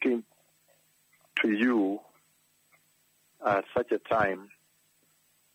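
A man preaches forcefully into a microphone, with long pauses.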